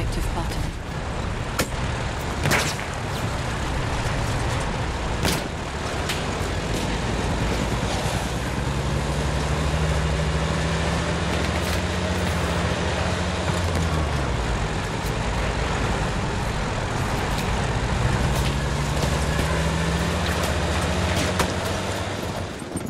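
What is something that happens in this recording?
A vehicle engine drones and revs.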